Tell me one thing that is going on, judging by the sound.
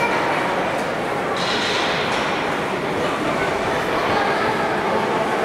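Ice skates scrape and glide across an ice rink.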